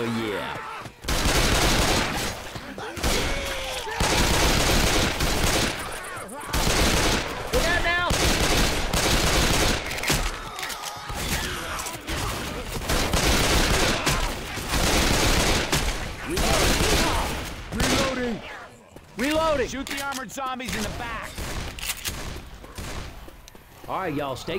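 Pistols fire in rapid bursts of gunshots.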